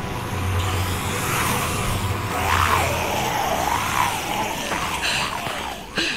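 A young woman grunts and pants with effort.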